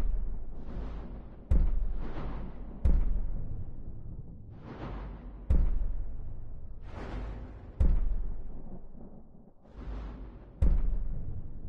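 Airy magical whooshes swell and fade again and again.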